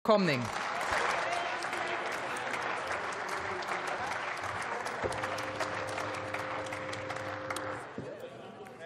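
An audience applauds in a large hall and slowly dies down.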